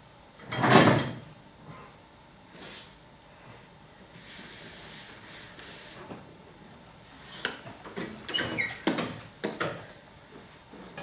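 A chair knocks and scrapes on a wooden floor.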